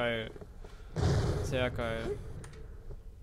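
A rifle fires with a loud blast.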